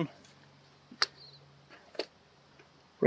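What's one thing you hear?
A wire clicks faintly against a plastic insulator.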